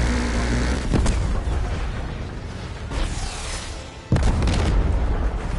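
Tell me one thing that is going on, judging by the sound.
Rockets explode with heavy booms.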